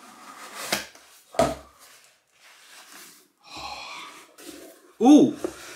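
Cardboard rustles as a box is handled.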